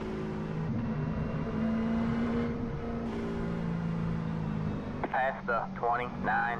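A racing car engine drones steadily, shifting pitch.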